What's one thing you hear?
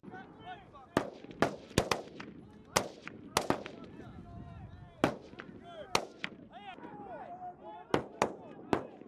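Gunshots crack sharply, one at a time, and echo off hills.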